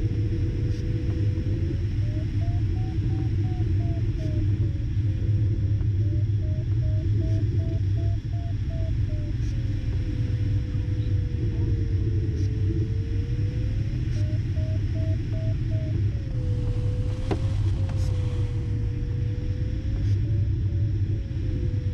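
A glider's flight instrument gives a tone that slides up and down and breaks into quick beeps at times.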